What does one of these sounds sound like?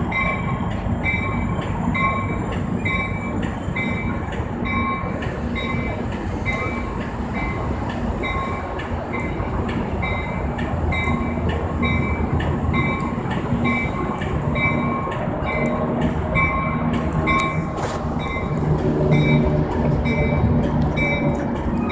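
A diesel train engine rumbles as the train slowly approaches and grows louder.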